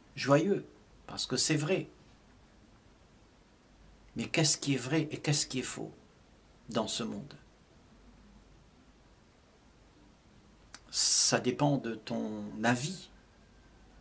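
An elderly man speaks calmly and slowly, close to a microphone, with long pauses.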